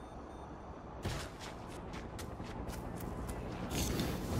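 Footsteps run quickly over hard ground.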